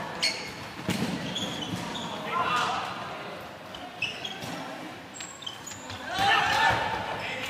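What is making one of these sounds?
Shoes squeak sharply on a hard court in a large echoing hall.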